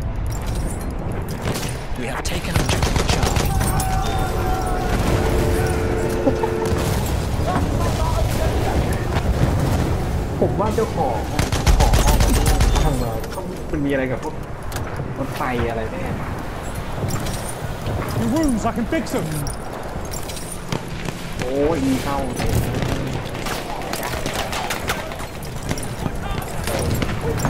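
Explosions boom and rumble in the distance.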